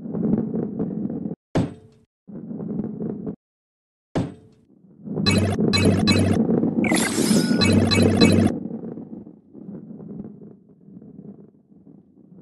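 A ball rolls along a wooden track with a low rumble.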